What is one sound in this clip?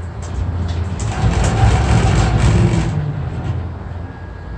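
A passing cabin rattles loudly past on the cable.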